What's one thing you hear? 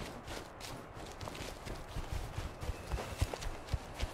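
Footsteps rustle through undergrowth.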